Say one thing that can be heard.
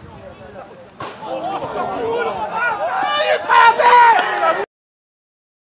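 A small crowd of spectators cheers loudly.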